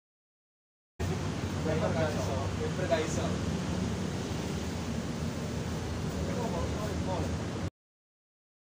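Men talk with each other outdoors, close by.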